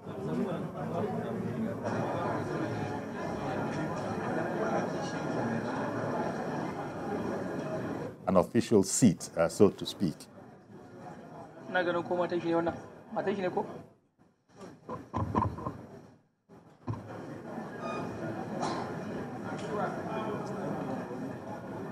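A crowd murmurs and chatters in a large chamber.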